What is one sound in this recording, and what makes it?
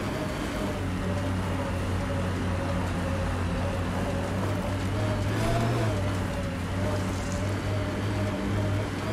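Tyres crunch over loose rocks and gravel.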